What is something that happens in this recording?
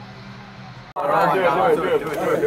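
Young men shout and cheer excitedly close by.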